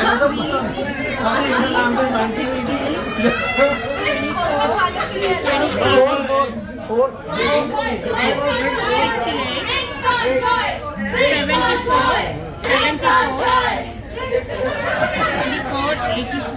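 Several people chatter in a lively crowd.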